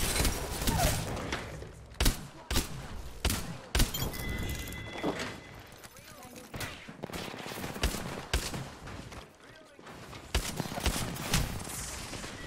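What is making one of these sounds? Gunshots fire in sharp bursts.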